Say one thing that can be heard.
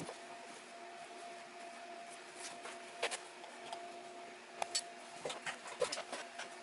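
Leather lacing is pulled through holes with soft rustling and tugging.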